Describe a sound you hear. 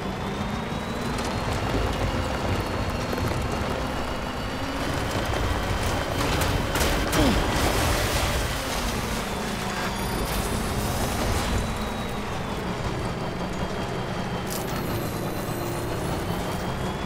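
Tyres crunch over rocky ground.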